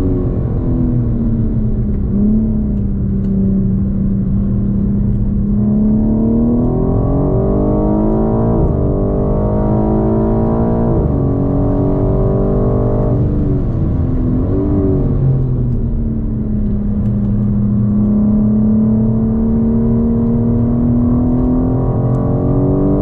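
A car engine roars loudly from inside the cabin, revving up and down through the gears.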